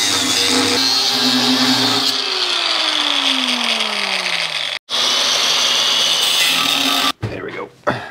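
An angle grinder grinds metal with a loud, harsh whine.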